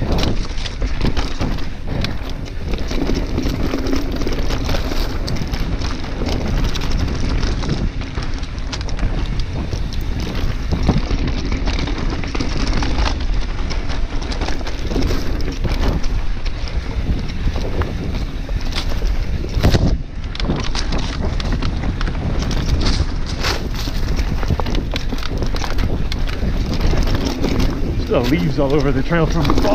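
Bicycle tyres rattle and crunch over a rough dirt trail.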